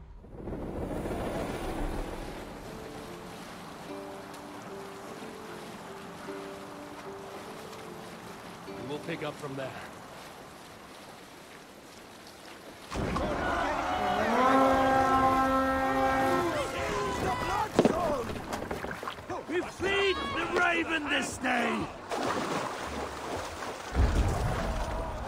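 Waves wash and lap against a wooden boat.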